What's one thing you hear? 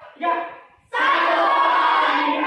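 A group of young people cheer loudly.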